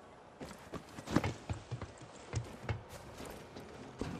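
Hands and feet clank on a metal ladder.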